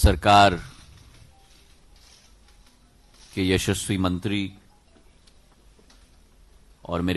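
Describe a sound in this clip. A young man speaks calmly into a microphone, with pauses between phrases.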